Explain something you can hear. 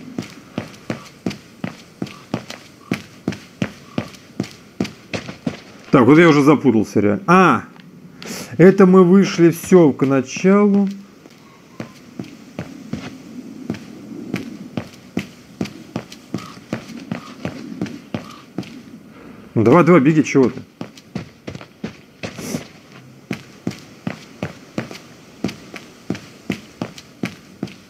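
Footsteps run quickly and steadily over stone.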